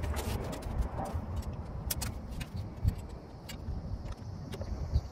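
Metal parts clink as a motorcycle's front end is taken apart.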